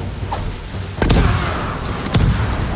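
A blast booms with a deep rumble.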